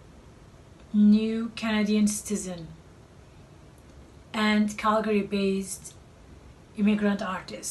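A middle-aged woman speaks calmly and close by, in short phrases with pauses.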